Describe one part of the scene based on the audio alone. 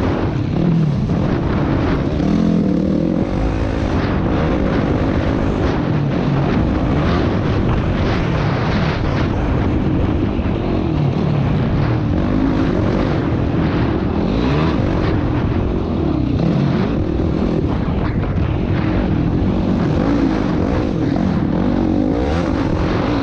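A quad bike engine roars and revs up and down close by.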